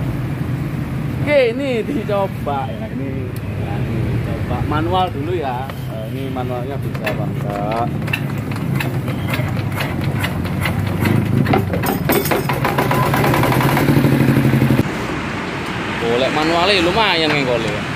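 A man talks nearby over the engine noise.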